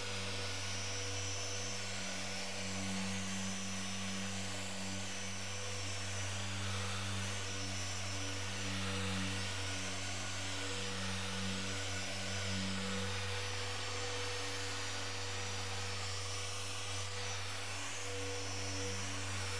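Electric polishers whir steadily.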